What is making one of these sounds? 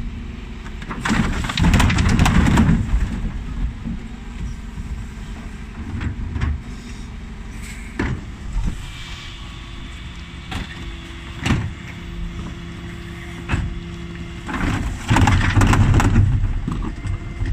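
Rubbish crashes into a truck's hopper.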